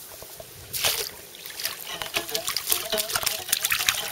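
Water laps and splashes as a fish is drawn into a net.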